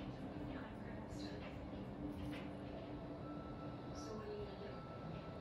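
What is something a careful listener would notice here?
A metal tool clicks lightly against a small plastic jar.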